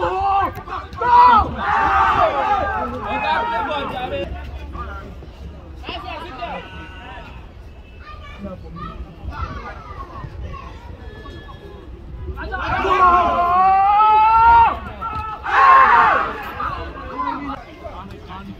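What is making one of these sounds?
Young men shout to each other outdoors.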